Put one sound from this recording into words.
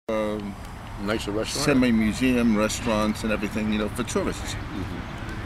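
An older man talks with animation, close by, outdoors.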